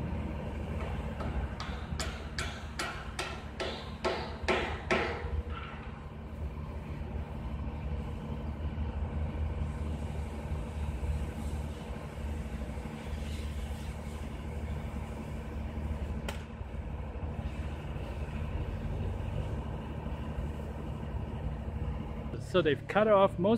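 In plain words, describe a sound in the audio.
A machine engine hums steadily.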